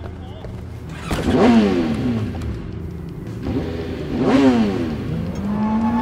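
A motorcycle engine starts with a loud rev.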